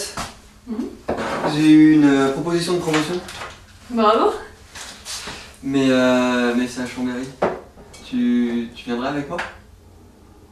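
A young man talks up close.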